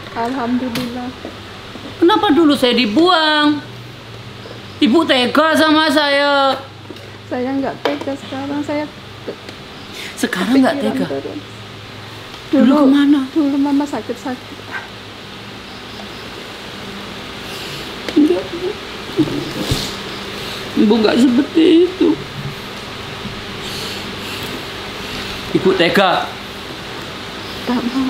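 A middle-aged woman speaks emotionally, close by.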